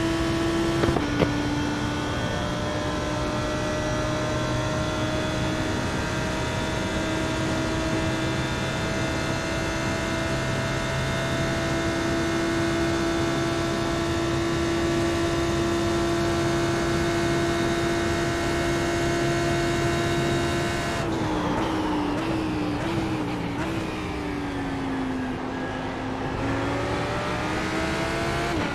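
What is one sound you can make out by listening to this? A race car engine drones at high speed, then drops in pitch as it slows and revs back up.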